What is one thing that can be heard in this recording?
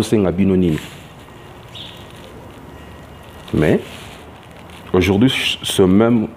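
A man speaks close by in drawn-out phrases, with pauses.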